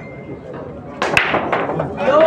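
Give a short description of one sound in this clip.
A cue ball cracks into a rack of balls on the break.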